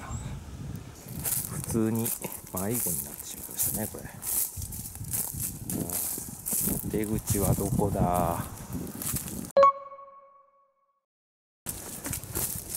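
Footsteps crunch through dry leaves on the ground.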